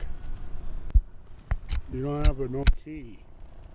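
A bike lock clicks and rattles.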